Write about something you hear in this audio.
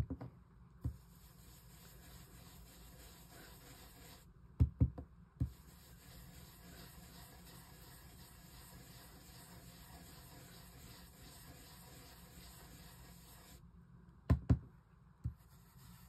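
A foam sponge dabs softly on paper.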